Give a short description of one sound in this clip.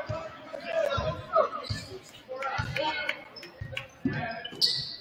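A basketball bounces repeatedly on a wooden floor in an echoing gym.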